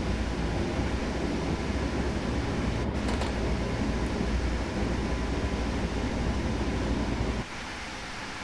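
An electric locomotive rumbles along the rails, heard from inside the cab.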